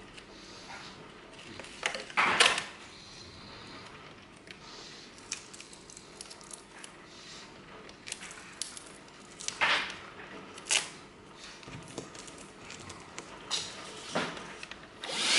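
Plastic parts click and snap as a hand vacuum is fitted together.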